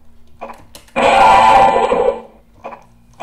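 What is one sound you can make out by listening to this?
Wooden crates break with a crunchy clatter.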